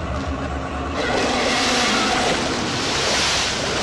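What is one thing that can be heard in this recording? Water churns and rushes loudly.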